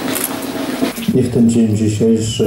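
A man reads aloud into a microphone, heard through a loudspeaker outdoors.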